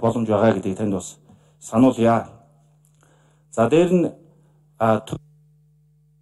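A man speaks into a microphone in a measured tone.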